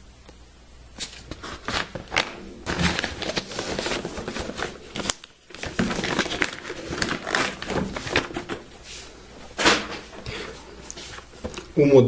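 Cardboard packaging rustles and scrapes as it is handled close by.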